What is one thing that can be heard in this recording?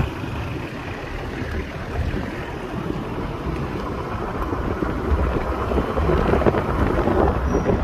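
A car drives along a road, its engine and tyres rumbling steadily.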